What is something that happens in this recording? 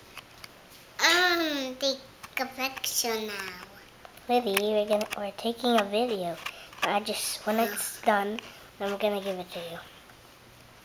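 A young girl talks close by, in a high, childish voice.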